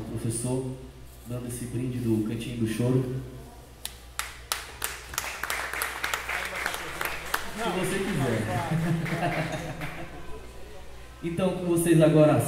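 A guitar strums along with a band.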